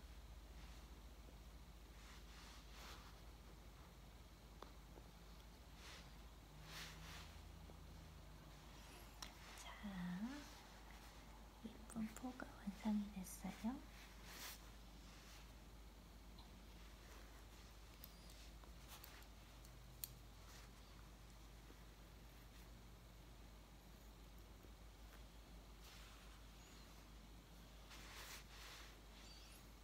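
Small clippers snip a cat's claws with sharp little clicks.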